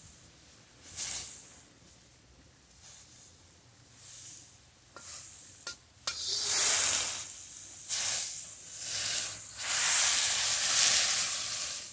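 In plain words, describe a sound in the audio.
Broccoli sizzles loudly in hot oil in a wok.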